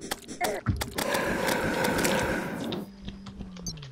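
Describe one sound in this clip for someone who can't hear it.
A video game spell effect crackles and hisses.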